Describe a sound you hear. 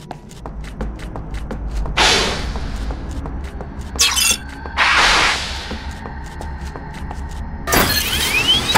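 Footsteps thud steadily on a metal floor.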